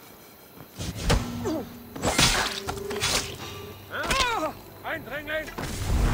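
A blade slashes and strikes with a sharp hit.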